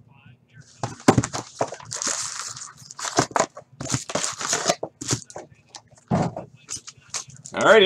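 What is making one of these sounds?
Cardboard boxes rustle and knock.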